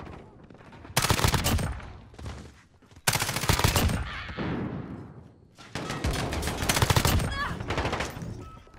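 Rapid gunfire rattles in loud, short bursts.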